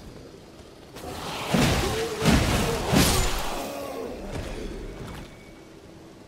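A blade slashes and strikes flesh with heavy thuds.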